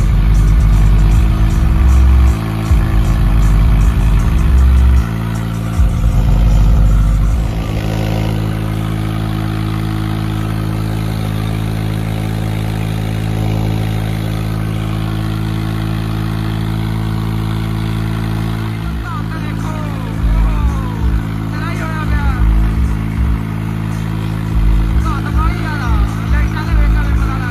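A large diesel engine drones steadily close by.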